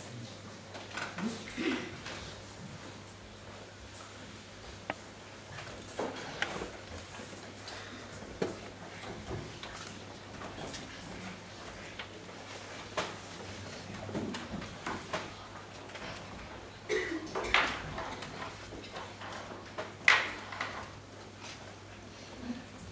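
Footsteps and shuffling sound as a group of people moves into place.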